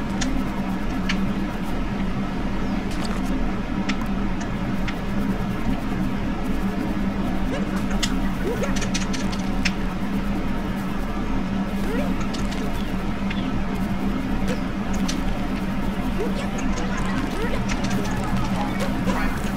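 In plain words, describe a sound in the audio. Light footsteps patter on grass and earth.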